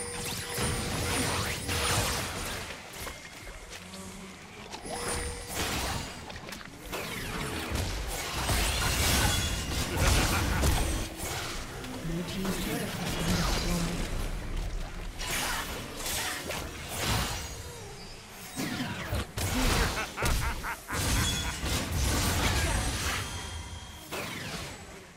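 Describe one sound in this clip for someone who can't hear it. Weapons clash and strike in a game fight.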